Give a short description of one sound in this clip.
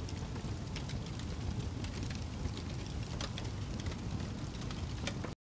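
Flames roar softly with a low rumble.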